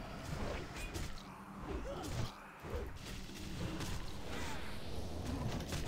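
Magic spells and weapon strikes crackle and clash in a fight.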